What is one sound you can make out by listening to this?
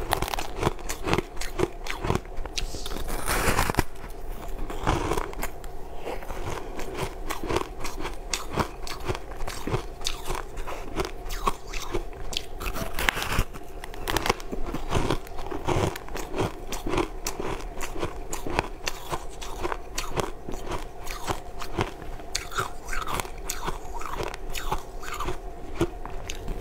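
A woman talks quietly with her mouth full.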